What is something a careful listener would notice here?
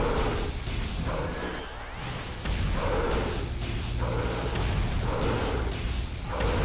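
A sci-fi energy weapon crackles and buzzes in repeated bursts.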